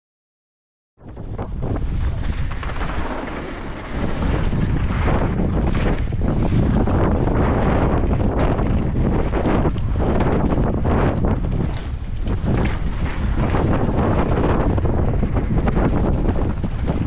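Bike tyres crunch and rattle over a rough dirt trail.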